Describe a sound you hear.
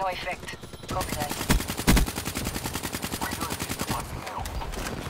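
A rifle fires in a rapid, rattling burst.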